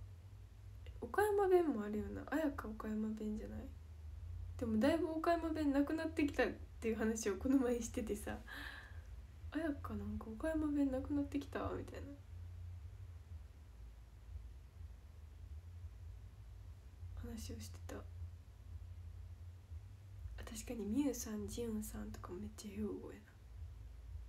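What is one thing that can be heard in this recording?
A young woman talks softly and casually, close to a microphone, in short bursts with pauses.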